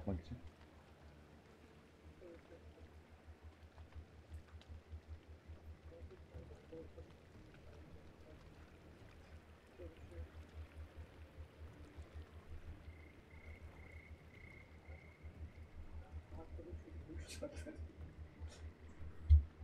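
A man speaks quietly and faintly near a microphone.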